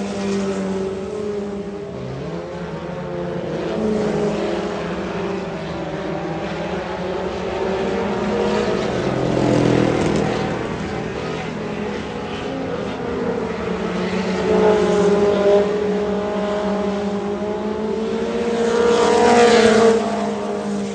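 Several race car engines roar and rev in the distance.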